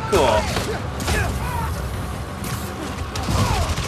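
Quick whooshes and soft thuds come as a figure swings and lands.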